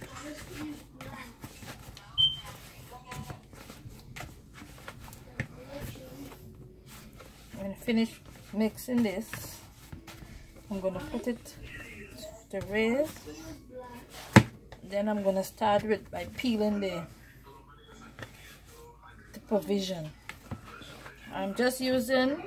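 Hands knead and slap soft dough.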